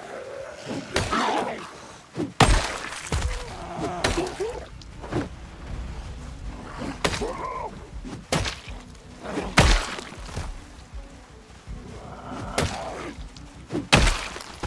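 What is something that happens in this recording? A heavy weapon thuds sharply into bodies several times.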